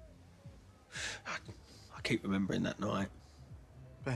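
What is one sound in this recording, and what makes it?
A young man answers.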